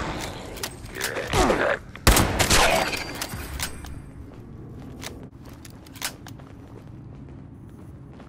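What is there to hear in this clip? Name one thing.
A creature snarls and screeches.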